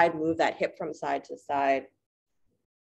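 A woman speaks close by with animation.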